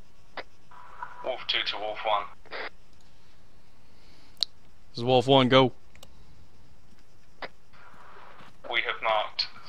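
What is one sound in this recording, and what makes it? A man speaks in short bursts through a headset microphone, close up.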